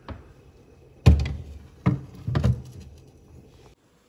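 A glass dish clatters onto a fridge shelf.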